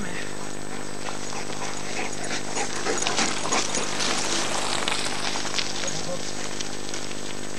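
Mountain bike tyres crunch over gravel and dry leaves as the bike passes close by.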